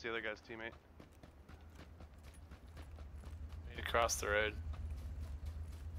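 Footsteps tread on grassy ground.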